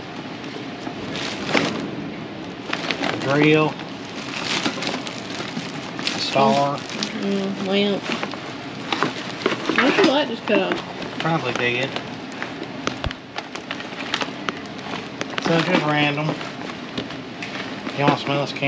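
Plastic bags rustle and crinkle as hands rummage through a bin.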